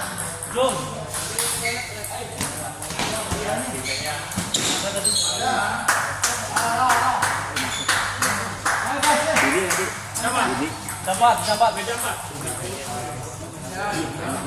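Ping pong balls click sharply against paddles and tables in a steady rally.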